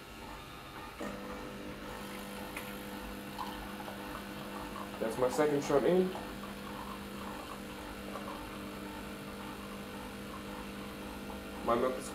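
A coffee machine hums and buzzes steadily as it pumps.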